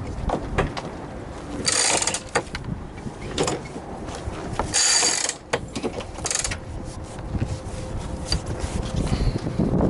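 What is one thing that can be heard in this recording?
A sail flaps and rustles in the wind.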